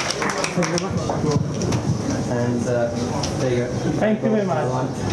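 A man talks on stage near a microphone.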